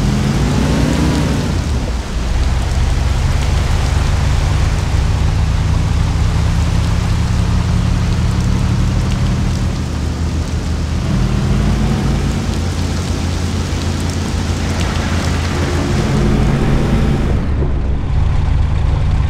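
An old car engine hums steadily, rising and falling in pitch as the car speeds up and slows down.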